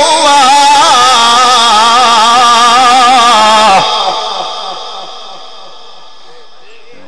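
A man chants loudly into a microphone through a loudspeaker, and his voice echoes and fades away.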